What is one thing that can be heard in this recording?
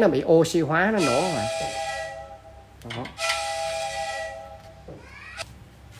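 A young man blows through a metal pipe, making a steady hollow tone.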